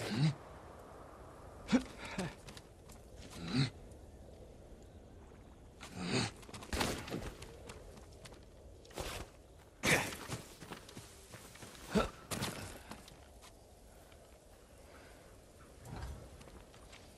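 Footsteps scuff and thud on rock and grass.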